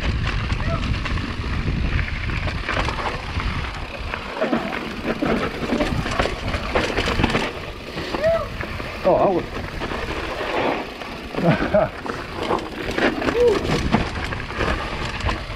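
Bicycle tyres crunch and roll over a rocky dirt trail.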